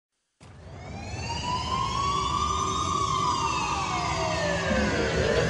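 A fire engine siren wails close by, rising and then falling in pitch.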